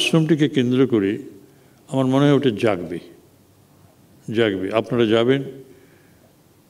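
An older man speaks calmly into a microphone, in short phrases with pauses.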